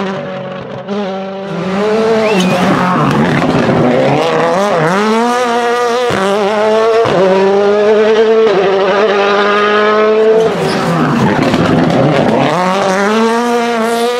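A rally car engine roars loudly close by, revving up and down through the gears.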